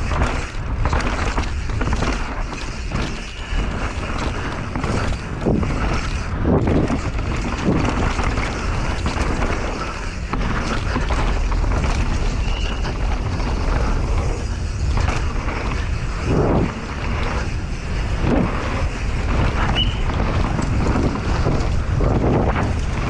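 Bicycle tyres roll and skid fast over a dirt trail.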